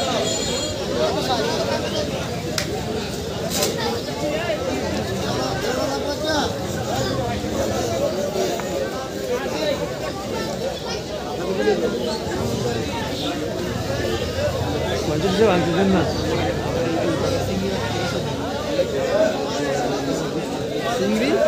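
Men talk nearby in loud, lively voices.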